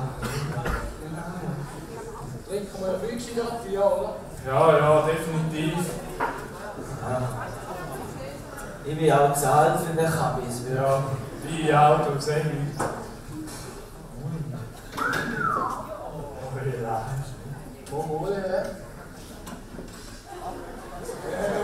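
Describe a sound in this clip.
A man speaks with animation through a loudspeaker in a large echoing hall.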